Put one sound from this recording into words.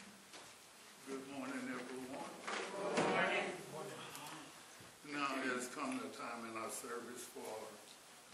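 A man speaks into a microphone in a large echoing room.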